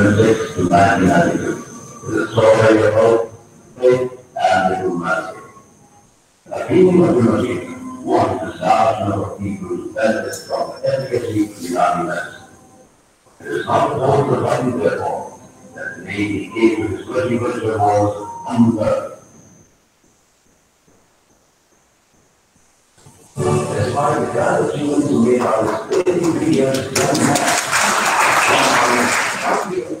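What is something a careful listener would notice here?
A man speaks steadily into a microphone in an echoing hall, heard through an online call.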